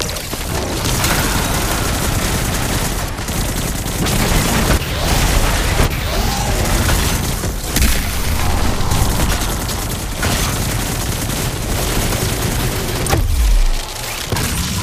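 Loud explosions rumble.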